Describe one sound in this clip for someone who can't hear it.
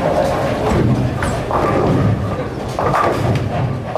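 A bowling ball rumbles as it rolls down a lane.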